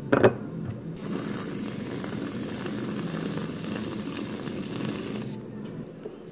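A whipped cream dispenser hisses as cream is piped out.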